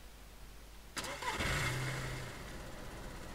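A car engine starts up with a loud burst.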